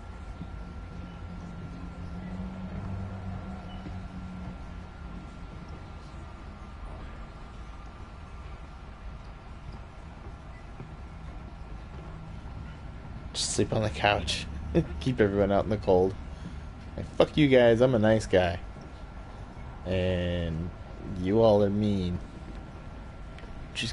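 Footsteps creak slowly across a wooden floor.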